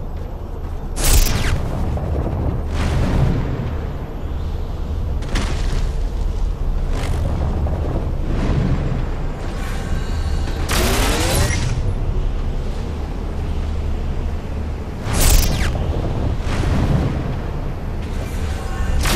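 A powerful leap whooshes through the air.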